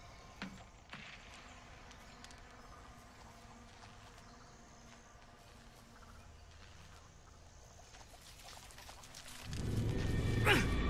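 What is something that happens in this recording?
Footsteps rustle softly through tall grass.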